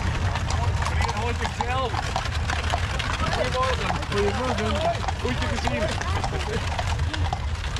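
Men and women on a passing carriage call out and chatter cheerfully nearby.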